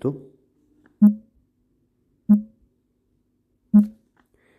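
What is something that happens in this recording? A short electronic tone sounds with each game move.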